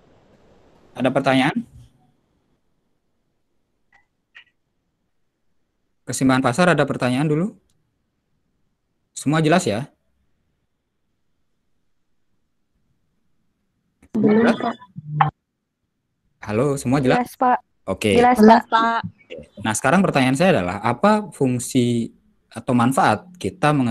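A young man speaks calmly through an online call, in short bursts with pauses.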